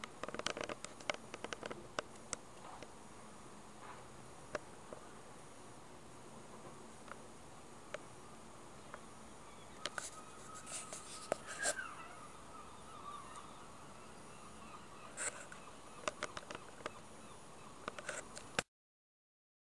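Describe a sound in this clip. Fingers bump and rub against a microphone in sharp clicks and rustles.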